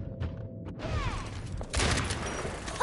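Flames burst and crackle in an explosion.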